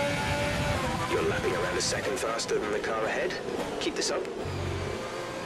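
A Formula One car's engine crackles and pops as it downshifts.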